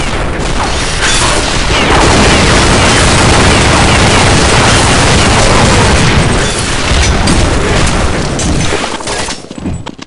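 Rapid gunfire blasts loudly.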